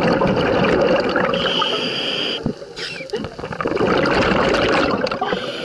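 Scuba exhaust bubbles rush and gurgle loudly close by underwater.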